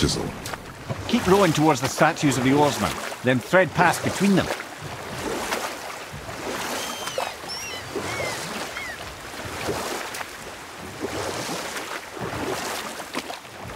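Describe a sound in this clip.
Oars splash through water.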